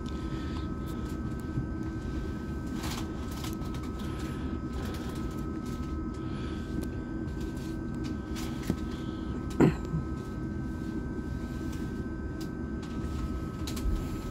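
Footsteps tap on a hard floor as people walk by.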